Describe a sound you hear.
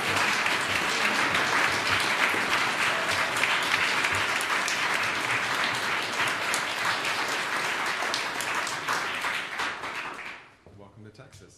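An audience applauds loudly in a hall.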